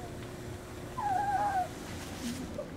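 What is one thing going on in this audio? A puppy whimpers softly.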